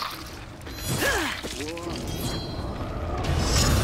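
Metal blades clash and ring.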